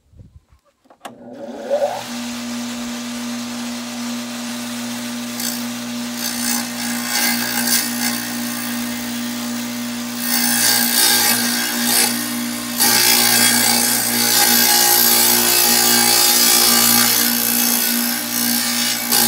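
An electric tile saw starts up and runs with a steady whine.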